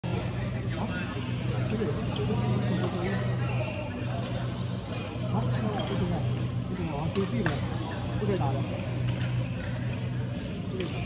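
Shuttlecocks are struck with sharp taps by rackets in a large echoing hall.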